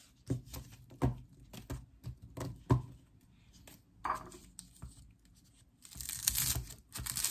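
Scissors snip through stalks with crisp crunching cuts.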